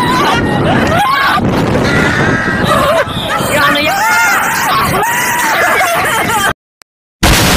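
A young woman screams and shrieks loudly.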